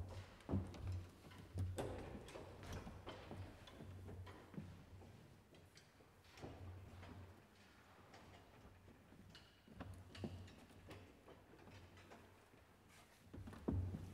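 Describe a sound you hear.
Wooden organ stop knobs thump and knock as they are pulled and pushed.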